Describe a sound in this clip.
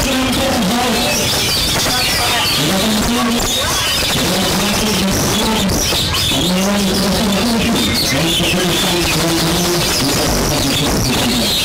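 A small bird chirps and sings repeatedly, close by.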